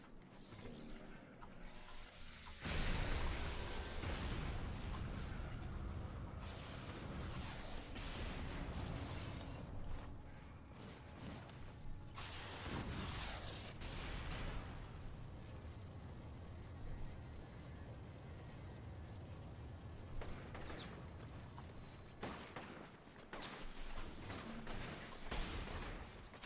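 Electric energy crackles and zaps.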